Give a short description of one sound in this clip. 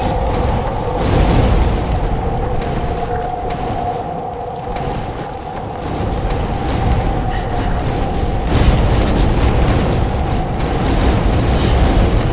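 Fire bursts with a whooshing roar.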